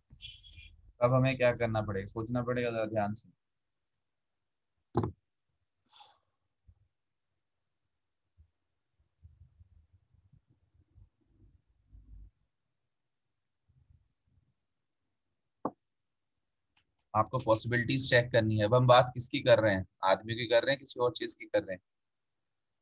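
A man speaks through a computer microphone, explaining calmly.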